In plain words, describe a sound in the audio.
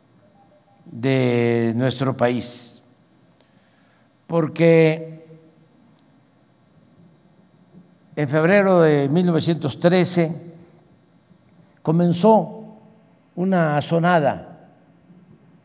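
An elderly man speaks slowly and solemnly into a microphone, with long pauses.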